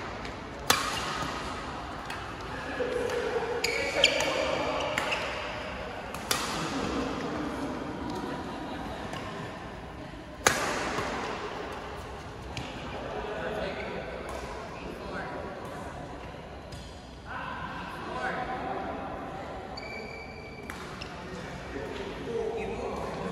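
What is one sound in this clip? The sounds echo through a large hall.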